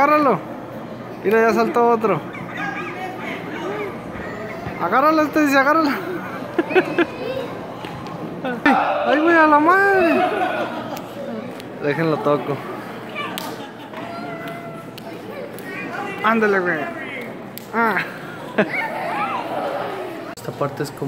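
Young children shout and squeal excitedly nearby.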